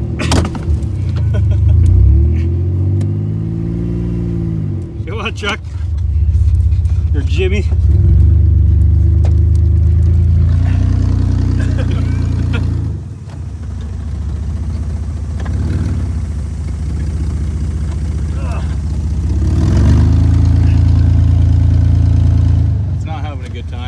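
A car engine revs up and settles back down.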